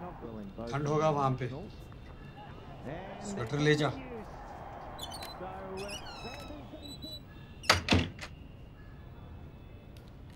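A clarinet plays a few notes.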